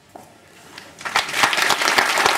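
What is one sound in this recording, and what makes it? A crowd claps and cheers loudly in a large echoing hall.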